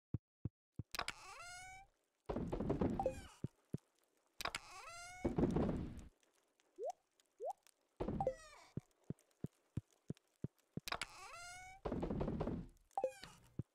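A chest opens and closes with short chiming game sounds.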